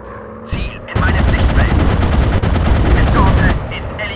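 Machine guns rattle rapidly.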